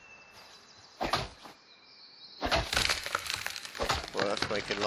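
An axe chops into a tree trunk with sharp thuds.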